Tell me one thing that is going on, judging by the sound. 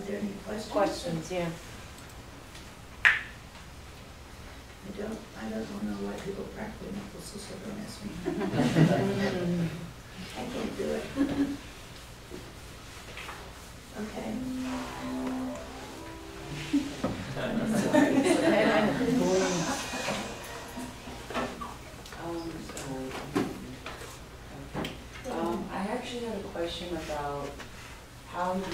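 A middle-aged woman speaks calmly and conversationally.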